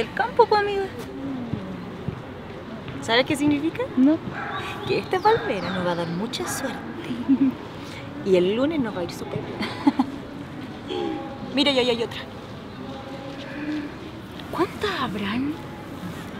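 A second young woman talks and answers, close by.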